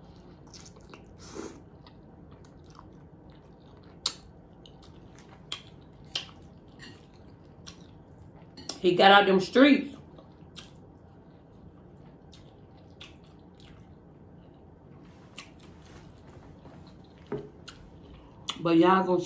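A woman chews and slurps noodles close to a microphone.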